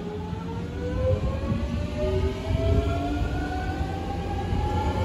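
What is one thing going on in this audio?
A train rumbles along the platform as it pulls away.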